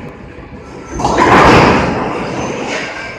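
Bowling pins clatter as a ball crashes into them.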